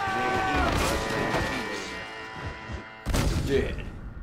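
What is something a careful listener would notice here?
A body thuds heavily onto wooden boards.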